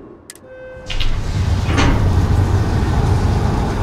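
A tram rumbles along its track.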